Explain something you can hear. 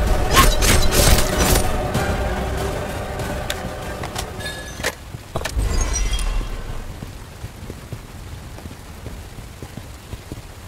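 A storm wind roars loudly and slowly dies down.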